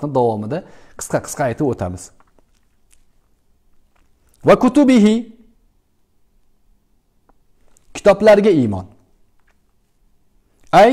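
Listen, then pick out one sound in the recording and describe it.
A middle-aged man reads aloud calmly and close up, with short pauses between phrases.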